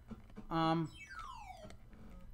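A video game sound effect sweeps downward in pitch.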